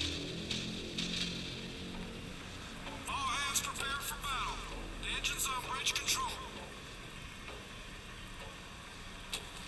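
Water laps gently around a ship's hull.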